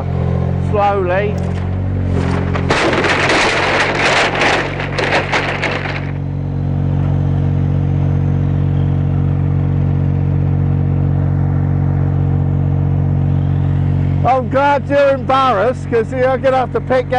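A forklift engine idles with a steady low hum.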